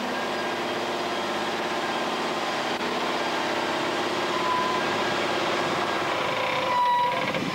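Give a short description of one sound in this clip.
A heavy truck engine rumbles and strains as the truck climbs a slope.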